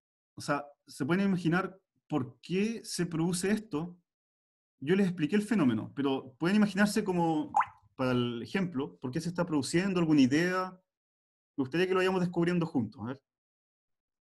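A man explains calmly into a close microphone.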